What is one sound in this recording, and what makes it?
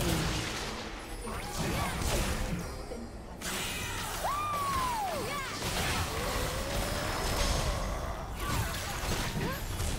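Sword blows clash in a fight.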